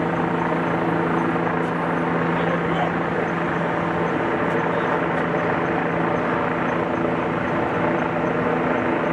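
A heavy truck's diesel engine idles loudly and steadily nearby.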